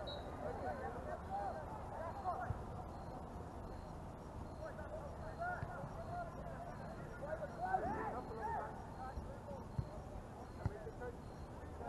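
Young men shout to each other in the distance outdoors.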